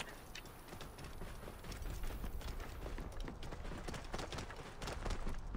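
A horse gallops with quick hoofbeats on sandy ground.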